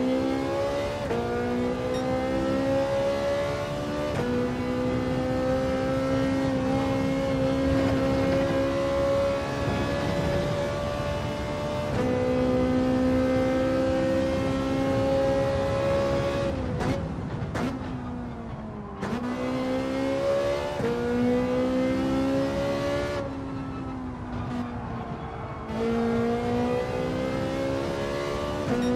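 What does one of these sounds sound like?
A racing car engine roars loudly, rising in pitch and dropping sharply with each gear change.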